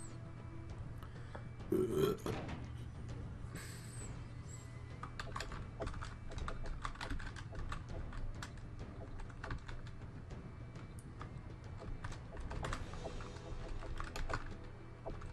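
Controller buttons click rapidly and softly.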